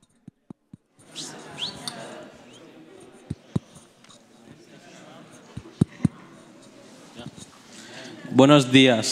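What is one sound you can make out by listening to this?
A crowd of young people murmurs and chatters quietly in a large hall.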